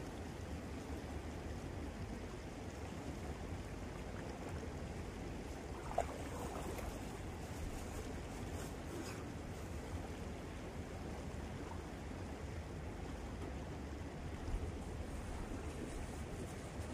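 Water splashes as a person wades through a shallow river.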